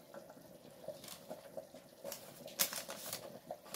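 Baking paper crinkles under a hand.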